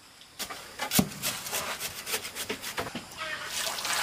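A steel shovel scrapes through dry cement mix.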